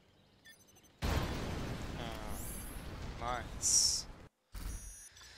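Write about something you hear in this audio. Explosions boom and rumble loudly.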